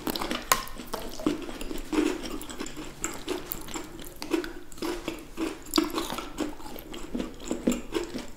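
Crisp chocolate wafers crunch and snap close to a microphone.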